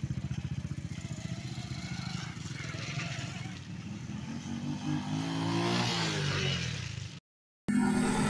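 Motorbike engines putter and rev as they ride past.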